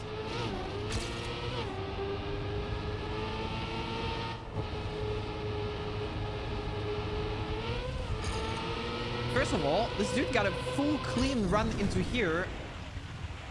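A racing car engine whines steadily, rising and falling in pitch.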